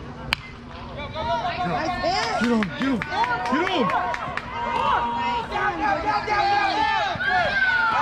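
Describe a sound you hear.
Men shout and cheer outdoors at a distance.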